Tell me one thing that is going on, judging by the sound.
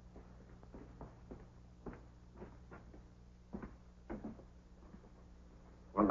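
A man speaks quietly in short phrases.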